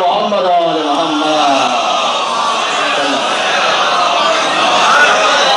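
A man speaks through a microphone in a loud, echoing voice.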